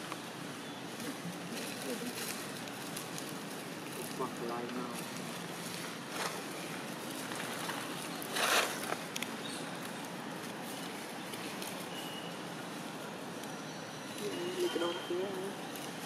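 Dry leaves rustle as a young macaque moves across them.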